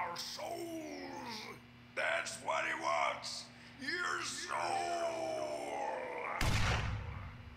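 A man rants and shouts wildly.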